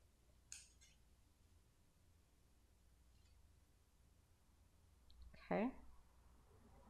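Paper rustles as hands handle and place a cutout.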